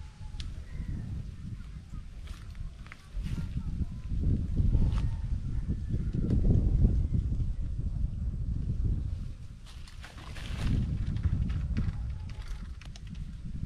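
Wind gusts and buffets a microphone outdoors.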